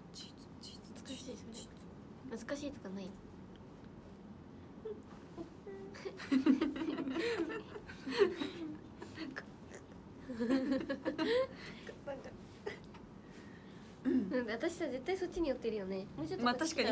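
Young women talk animatedly close to a microphone.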